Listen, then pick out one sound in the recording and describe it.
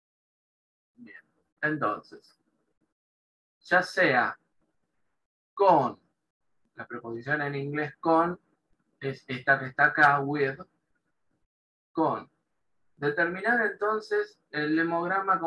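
A man speaks calmly over an online call, explaining.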